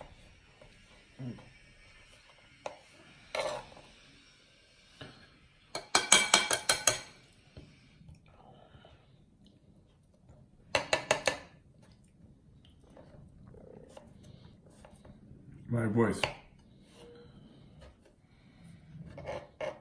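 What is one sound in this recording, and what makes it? A knife taps and scrapes on a wooden board.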